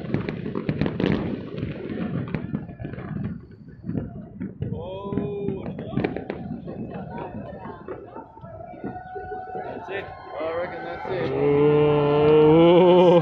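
Fireworks bang and crackle in the distance.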